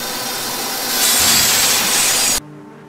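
A saw blade shreds something with a harsh grinding burst.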